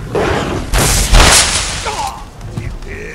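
Loud blows and clashes ring out in a fight.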